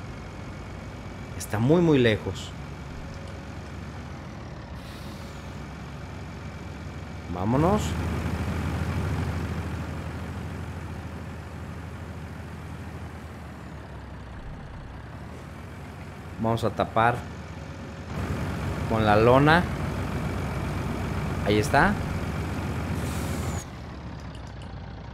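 A truck engine drones steadily as the truck drives along.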